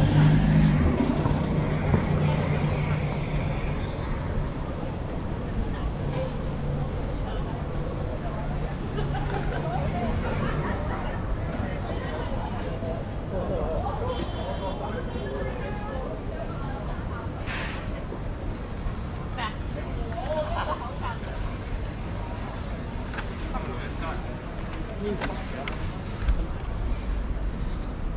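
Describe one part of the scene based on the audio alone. Voices of a crowd murmur outdoors on a busy street.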